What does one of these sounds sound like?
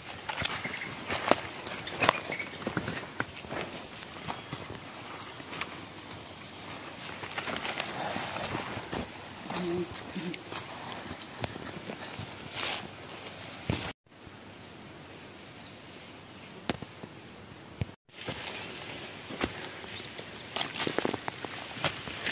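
Footsteps rustle through dense ferns and undergrowth.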